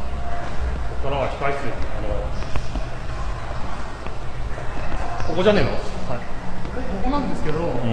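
A man speaks excitedly close by.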